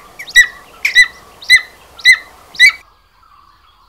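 An eagle calls with sharp, repeated high yelps.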